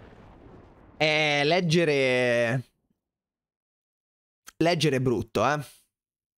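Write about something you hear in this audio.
A man talks excitedly into a close microphone.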